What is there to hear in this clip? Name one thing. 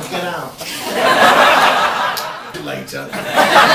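An audience laughs and cheers.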